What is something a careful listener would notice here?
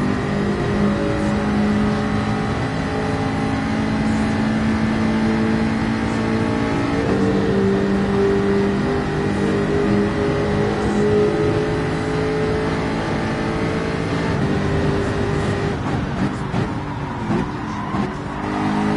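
A racing car engine roars at high revs, shifting gears as it speeds along.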